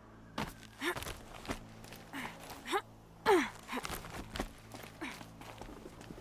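Footsteps scrape over rock.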